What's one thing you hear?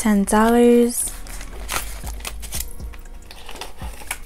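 Paper banknotes rustle as they are counted.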